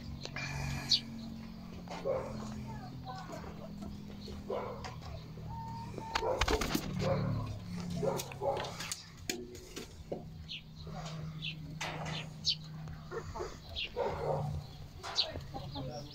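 Hens and roosters cluck and call.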